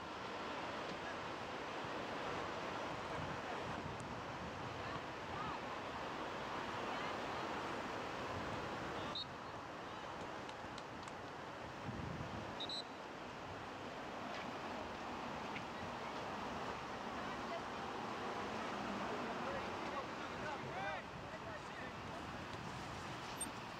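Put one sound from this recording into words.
Young players shout and call out across an open field, far off.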